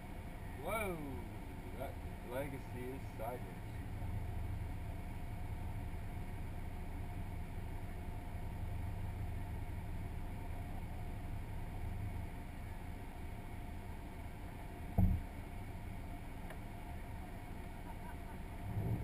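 A car engine idles with a low steady rumble inside the cabin.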